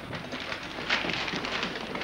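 Paper rustles as a newspaper is handled.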